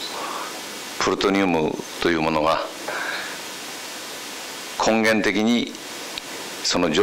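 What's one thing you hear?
A middle-aged man speaks calmly and deliberately into a microphone.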